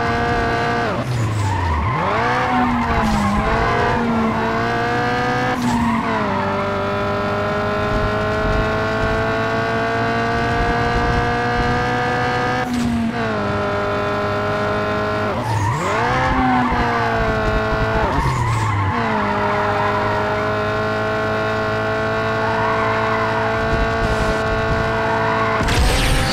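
A car engine roars steadily at high revs, dropping briefly as the gears shift.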